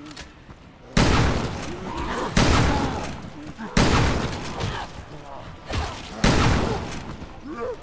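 Loud gunshots boom and echo.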